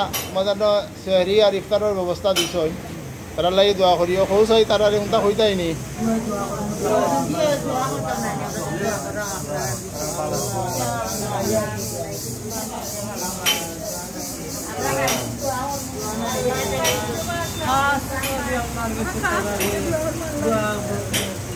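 An elderly man recites a prayer aloud in a chanting voice.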